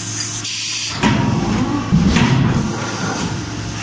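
A forging press squeezes hot metal with a deep rumble.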